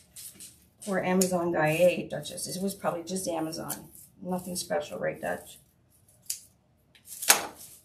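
Scissors snip.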